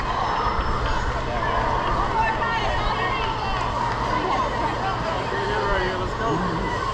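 Young boys call out and chatter across an open field.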